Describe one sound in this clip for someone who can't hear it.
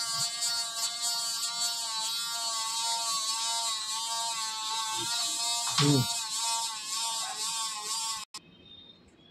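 A dental instrument whines steadily inside a mouth.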